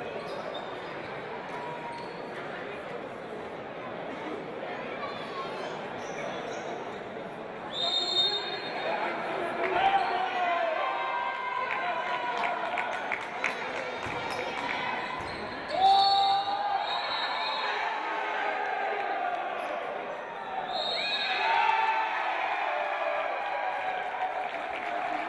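Spectators murmur and cheer in a large echoing hall.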